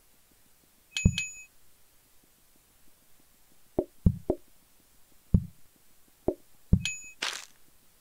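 A bright chime rings as coins are collected.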